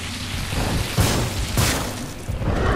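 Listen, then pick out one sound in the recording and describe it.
A fiery blast bursts with a sharp crack.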